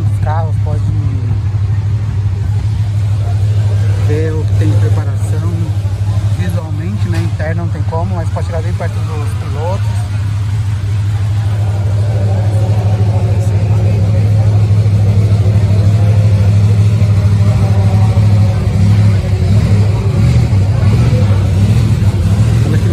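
A car engine idles with a steady low rumble nearby.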